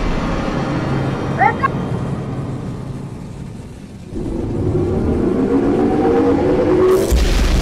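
A rocket engine roars.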